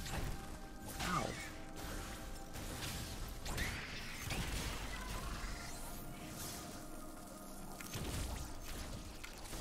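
Energy blasts fire and burst in sharp bursts.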